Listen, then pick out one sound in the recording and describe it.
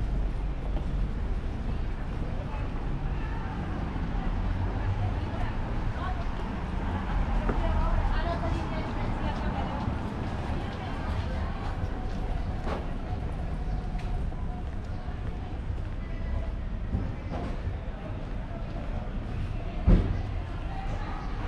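Distant city traffic hums steadily outdoors.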